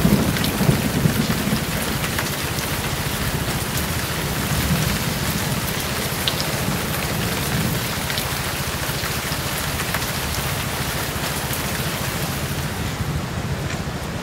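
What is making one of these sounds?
Water splashes as a man swims through shallow water.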